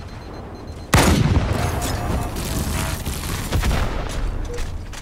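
A rifle fires bursts of gunshots.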